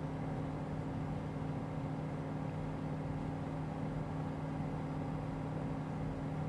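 A small plane's engine drones steadily from inside the cockpit.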